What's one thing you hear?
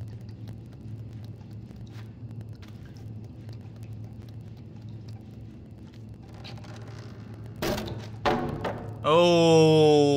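Small footsteps patter softly on a wooden floor.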